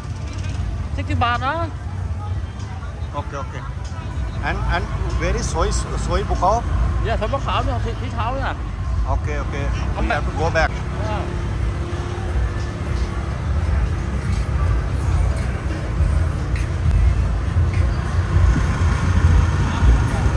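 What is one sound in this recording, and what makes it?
A crowd of adults chatters in the distance outdoors.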